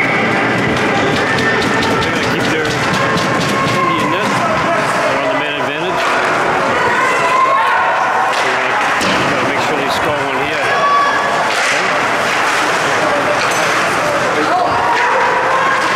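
A crowd of spectators chatters and calls out in a large echoing rink.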